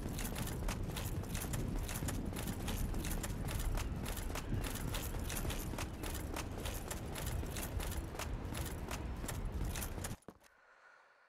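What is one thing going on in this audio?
Quick footsteps patter on stone steps.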